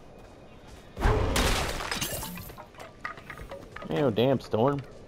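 A sword swings and strikes with heavy thuds.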